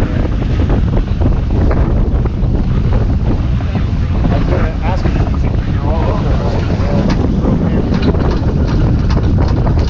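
Strong wind roars across a microphone outdoors.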